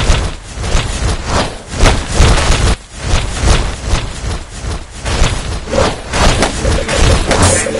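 Small fireballs whoosh as they are shot.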